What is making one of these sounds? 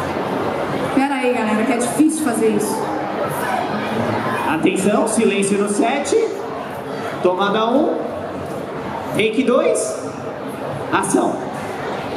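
A man speaks with animation into a microphone over loudspeakers in a large echoing hall.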